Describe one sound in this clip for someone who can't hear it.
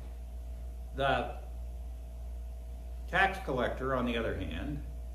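An elderly man speaks calmly and expressively in a room with a slight echo.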